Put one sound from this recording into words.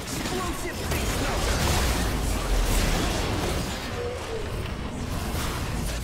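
Game spell effects crash and explode in quick succession.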